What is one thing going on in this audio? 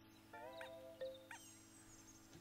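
A short bright chime rings out.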